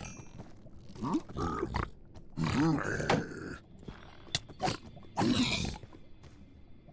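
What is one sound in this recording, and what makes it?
A creature grunts and snorts.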